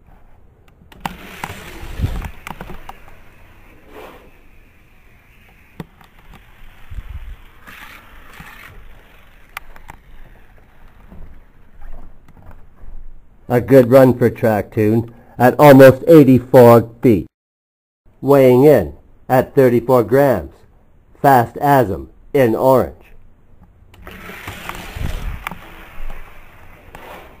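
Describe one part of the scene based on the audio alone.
A small toy car rattles as it rolls down a plastic track.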